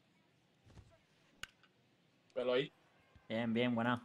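A bat cracks against a baseball.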